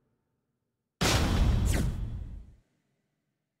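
An electronic swoosh sound plays.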